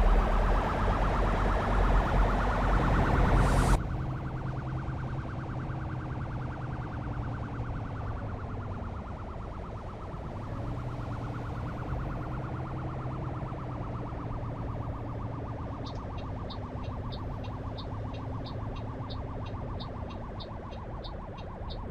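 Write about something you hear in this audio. A bus engine rumbles steadily, louder at first and then muffled.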